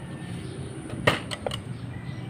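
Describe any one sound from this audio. A string trimmer is set down on grass with a thud.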